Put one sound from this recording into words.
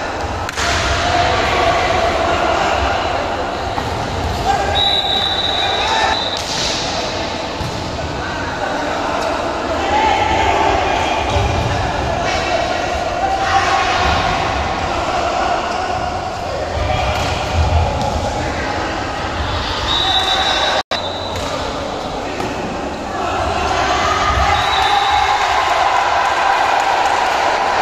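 Young men shout and call out loudly in a large echoing hall.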